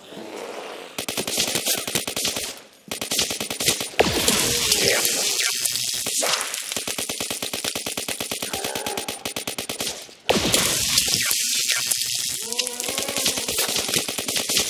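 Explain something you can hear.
A rapid-fire gun shoots in long, fast bursts.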